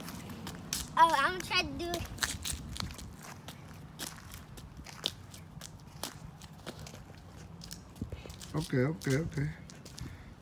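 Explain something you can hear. Sandals slap on pavement as a child hops.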